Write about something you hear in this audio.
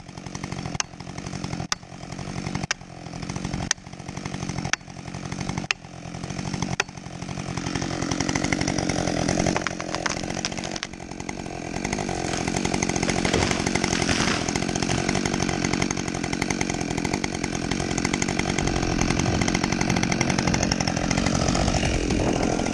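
A chainsaw idles.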